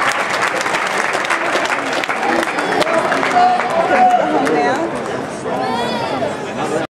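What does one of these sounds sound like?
An audience claps and cheers loudly in a large hall.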